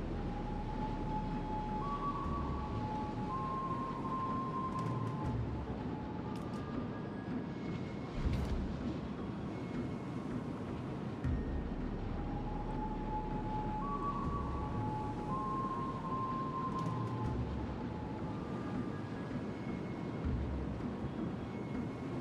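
Water rushes and splashes along a ship's hull.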